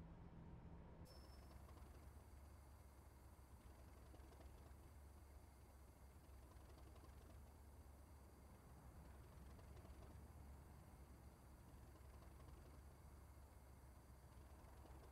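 A diesel locomotive idles nearby with a deep, steady rumble.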